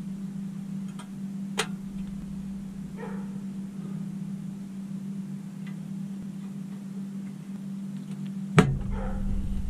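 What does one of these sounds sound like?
Small plastic parts click and snap into place on a metal body.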